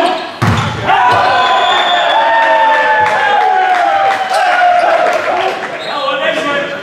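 Young men shout and cheer loudly.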